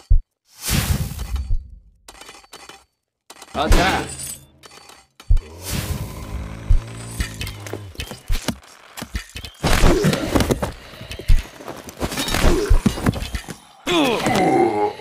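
Swords clash and thud in a noisy battle.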